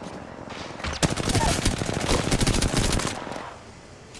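Gunshots ring out loudly.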